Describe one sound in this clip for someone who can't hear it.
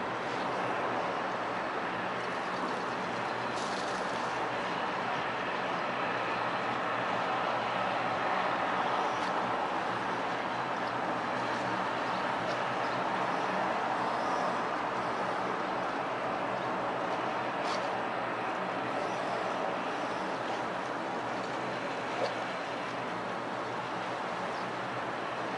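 Water laps gently against a dock.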